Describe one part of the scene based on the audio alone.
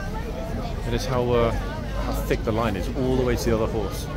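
A man talks on a phone close by.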